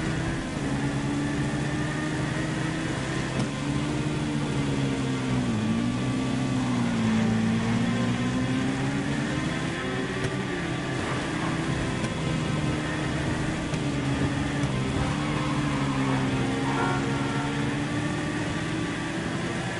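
A motorcycle engine hums steadily, rising and falling in pitch as it speeds up and slows down.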